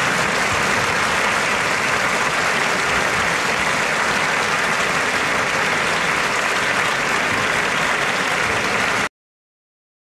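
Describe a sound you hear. A radio hisses with loud, steady static.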